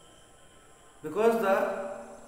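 A man speaks calmly and clearly close to the microphone.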